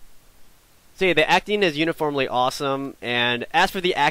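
A man speaks close to a headset microphone, calmly and with animation.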